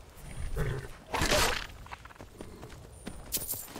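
Leaves and branches rustle as a horse brushes through them.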